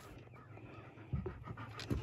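A dog pants nearby.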